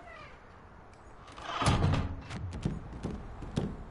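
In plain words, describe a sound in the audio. A door bangs open.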